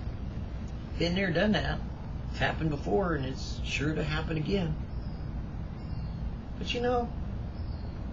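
An older man speaks calmly and close by, in short phrases.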